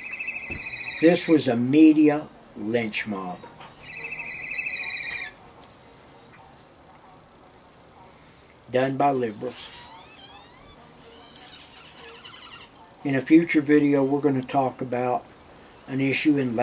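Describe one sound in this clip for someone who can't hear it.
An elderly man speaks calmly and close by, with pauses.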